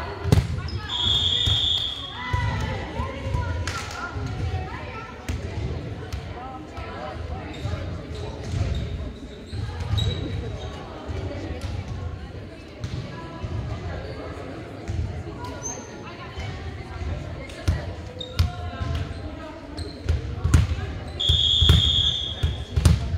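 A referee's whistle blows sharply in a large echoing gym.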